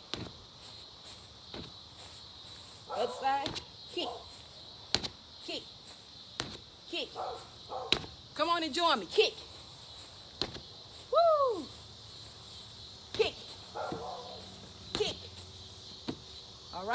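Gloved fists thud against a heavy punching bag in quick bursts.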